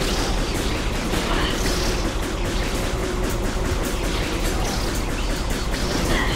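Explosions burst and crackle.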